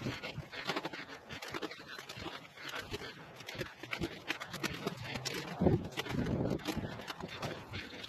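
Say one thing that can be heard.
Gloved hands scoop and scatter mulch with a soft rustle.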